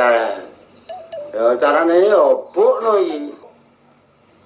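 An older man speaks with animation close by.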